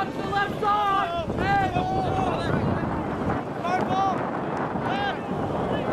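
Young men shout loudly across an open field.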